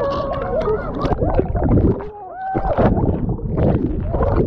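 Water splashes and gurgles as the microphone dips under the surface.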